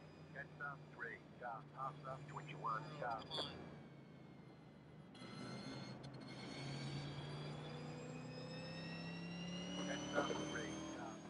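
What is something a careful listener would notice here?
A race car engine hums and then revs higher as the car speeds up.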